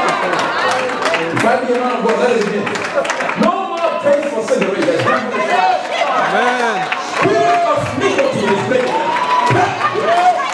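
A crowd of men and women sings and shouts loudly nearby.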